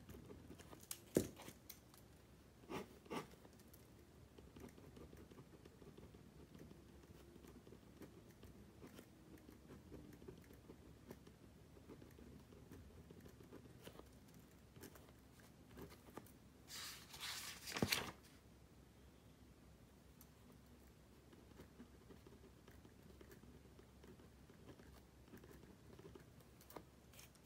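A pen scratches softly on paper, close by.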